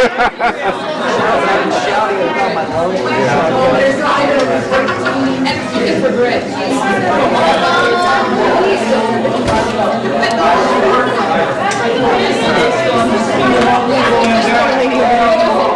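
A crowd of men and women chat all at once, close by, in a large room.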